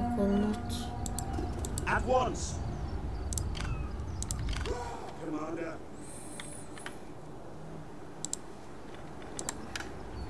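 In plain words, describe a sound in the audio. A computer game's interface clicks sharply a few times.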